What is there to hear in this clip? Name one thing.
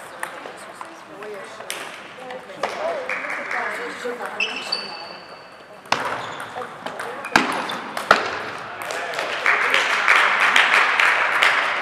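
A table tennis ball clicks back and forth off paddles and a table in a large echoing hall.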